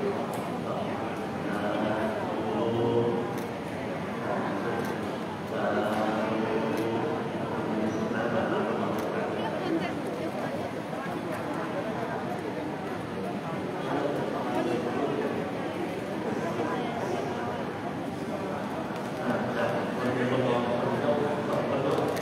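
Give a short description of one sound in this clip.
A group of men chant together in steady low voices, amplified through a microphone.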